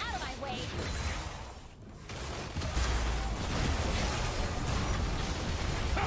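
Video game spell effects crackle and burst during a fight.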